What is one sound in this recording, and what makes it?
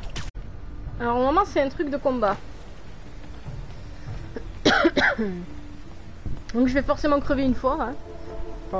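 A middle-aged woman talks with animation into a microphone, in short bursts.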